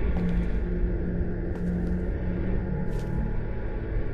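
A body thuds onto a wooden floor.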